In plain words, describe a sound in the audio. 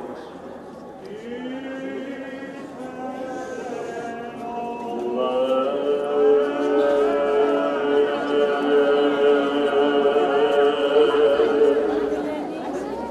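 A group of men chant together in slow, sustained unison.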